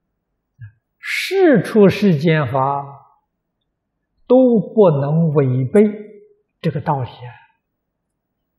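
An elderly man speaks calmly and slowly into a microphone.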